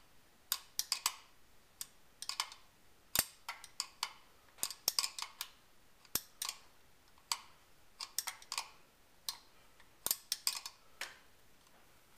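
A ratchet wrench clicks in quick bursts against metal.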